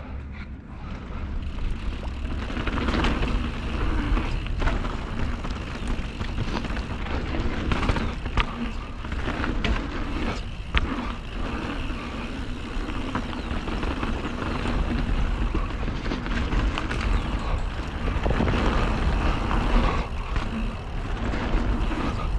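Bicycle tyres crunch and rattle over a dirt trail and rocks.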